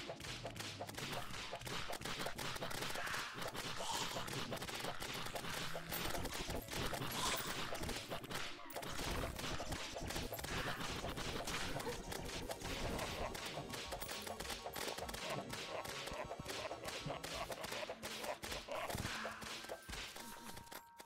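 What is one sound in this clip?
Rapid magical zaps and blasts crackle from a video game.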